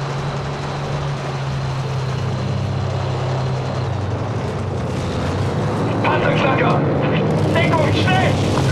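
A tank engine rumbles as the tank rolls forward.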